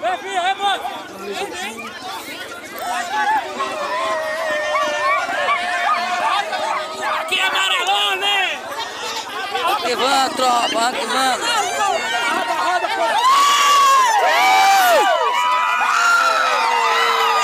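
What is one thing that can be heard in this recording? A crowd of young people sings together outdoors.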